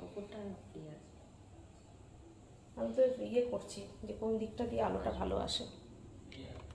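A woman speaks briefly and close by.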